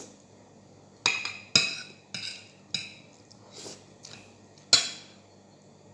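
A spoon clinks and scrapes against a plate.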